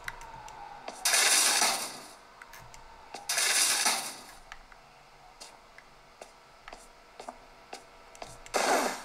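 Harsh bursts of noise blast from a handheld console's speakers.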